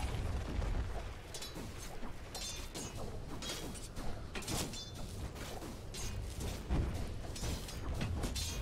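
Weapons clash and strike in a game battle.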